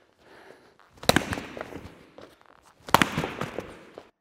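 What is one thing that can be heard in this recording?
Punches thud against a padded glove.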